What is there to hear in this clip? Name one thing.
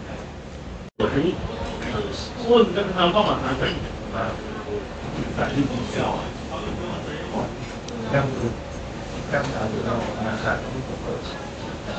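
A young woman talks close to the microphone.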